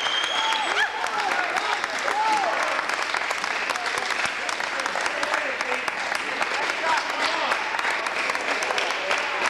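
A crowd of men and women cheers and shouts.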